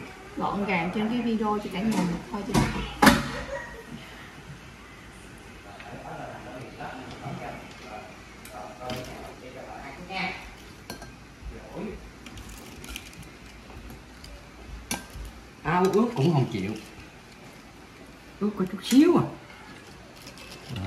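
Metal tongs clink against the rim of a pot.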